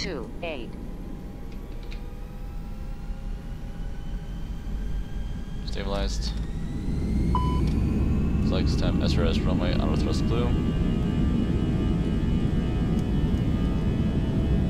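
Jet engines whine and roar, rising steadily in pitch as they spool up.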